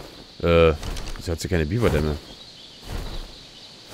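Large wings flap with heavy beats.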